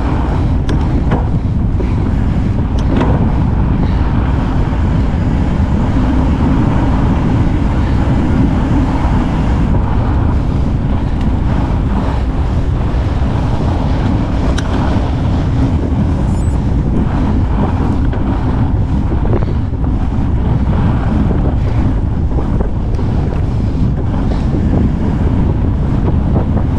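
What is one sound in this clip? Bicycle tyres crunch over packed snow.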